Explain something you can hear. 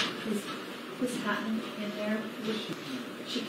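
A woman speaks calmly from across a quiet room.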